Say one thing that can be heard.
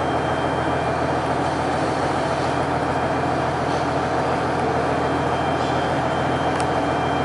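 A train's diesel engine idles with a steady low rumble.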